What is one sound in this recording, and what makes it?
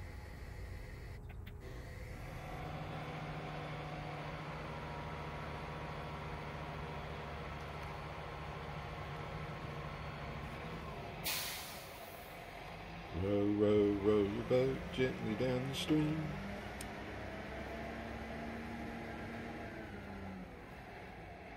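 A small outboard motor idles with a steady low hum.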